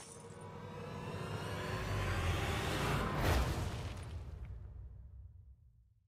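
A large crystal structure bursts with a deep rumbling boom that fades away.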